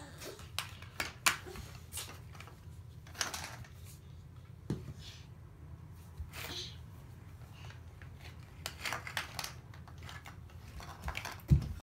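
Small plastic toys clatter and tap on a hard floor.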